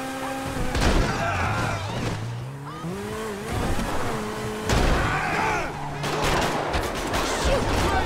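A car engine roars as a car speeds along.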